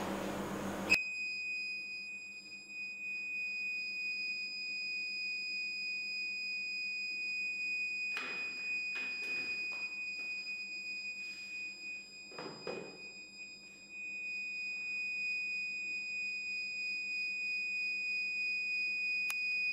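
A power backup unit gives a steady, high-pitched electronic tone.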